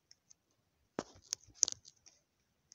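Phone keyboard taps click quickly.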